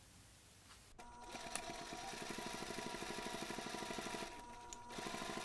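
A sewing machine runs with a fast, steady whirring and clatter.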